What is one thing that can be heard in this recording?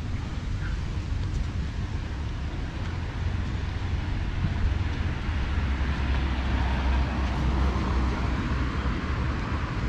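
Wind blows steadily outdoors, rumbling across the microphone.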